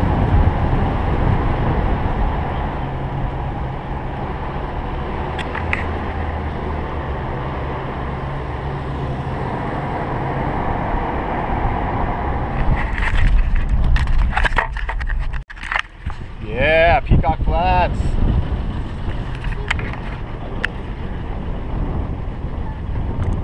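A car engine rumbles steadily as the vehicle drives over a bumpy dirt track.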